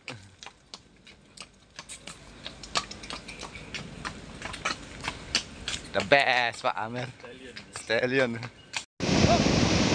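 A horse's hooves clop on a paved path.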